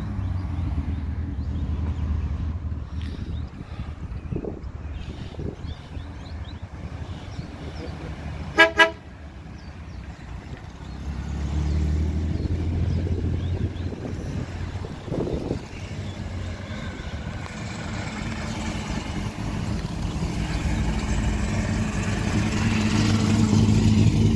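Old cars drive past one after another with low engine rumbles.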